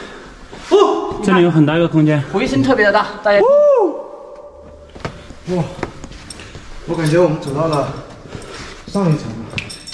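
A man talks with animation close by, his voice echoing in a large hollow space.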